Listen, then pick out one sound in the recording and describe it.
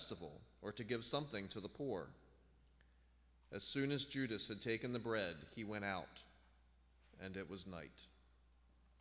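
A man reads aloud calmly through a microphone in a large echoing hall.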